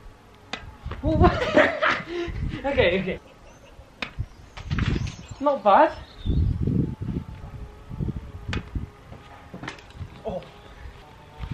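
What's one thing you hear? Young men talk and laugh with animation nearby.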